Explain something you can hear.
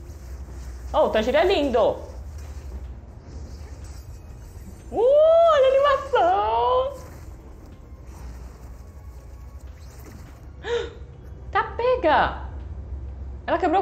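A young girl talks and exclaims loudly with animation close by.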